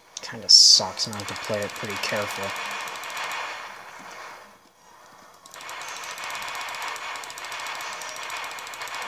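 Game sound effects play through a small laptop speaker.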